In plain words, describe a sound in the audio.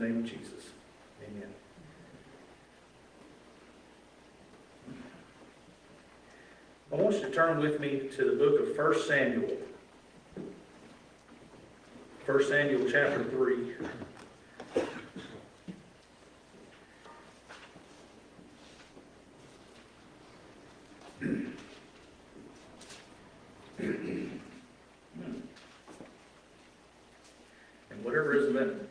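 A man preaches through a microphone in a large echoing room, speaking in bursts with long pauses.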